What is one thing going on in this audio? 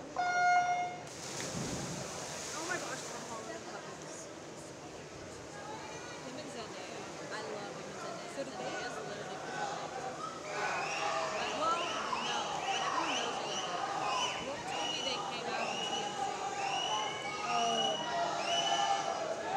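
Swimmers splash into the water and keep splashing as they swim.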